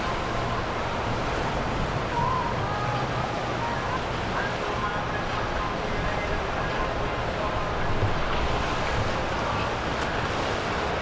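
A boat engine rumbles steadily close by.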